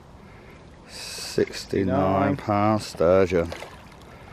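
A fish splashes and thrashes in shallow water.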